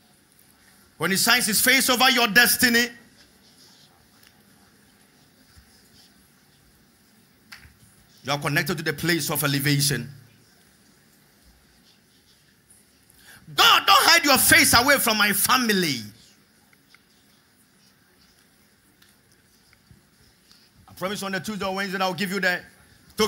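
A man speaks with animation through a microphone, in short bursts with pauses between.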